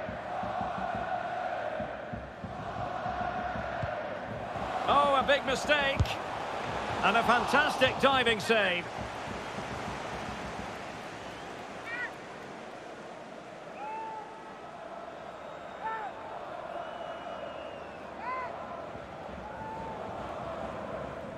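A stadium crowd roars and chants.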